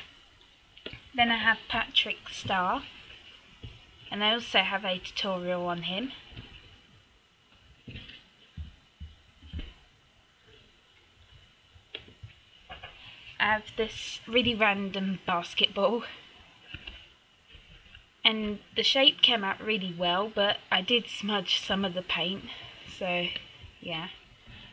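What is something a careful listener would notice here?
A young girl talks with animation close to the microphone.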